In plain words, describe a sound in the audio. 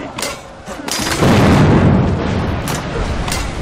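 A loud blast booms and rumbles.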